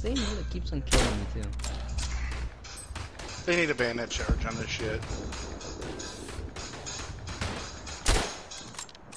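A bolt-action rifle fires single shots.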